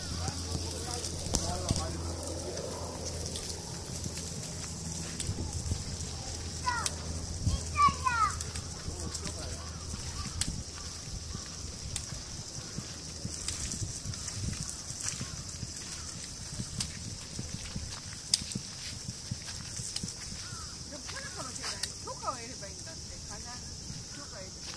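Footsteps scuff along a paved path.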